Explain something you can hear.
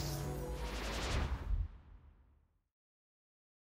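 Game music plays, then quickly fades away to silence.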